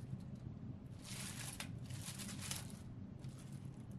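Plastic packaging crinkles in a woman's hands.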